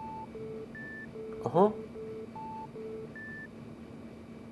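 Short electronic beeps sound in a quick pattern.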